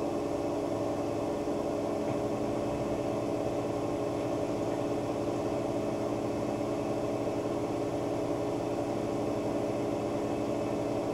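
A washing machine drum hums and whirs steadily as it spins.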